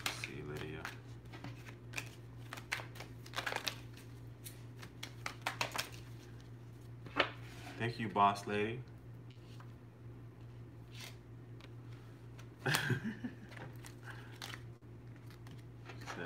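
Cards rustle and tap on a table.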